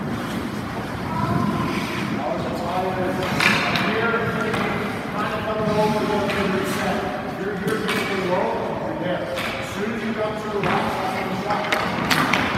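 A man talks calmly in a large echoing rink.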